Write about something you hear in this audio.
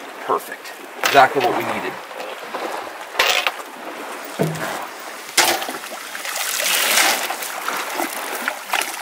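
A net splashes as it is hauled out of the water.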